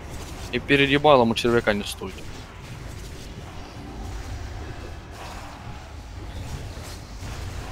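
Fantasy spell effects whoosh and crackle during a battle.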